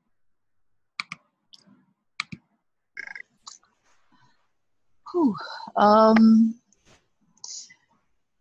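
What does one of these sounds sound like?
An elderly woman talks over an online call.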